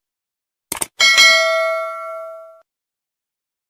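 A small bell chimes brightly and rings out.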